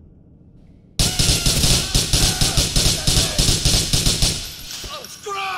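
A gun fires in a rapid burst of loud shots.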